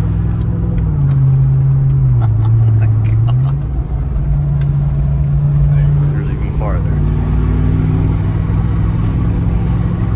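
An engine hums low and steady inside a moving vehicle, its pitch shifting a little.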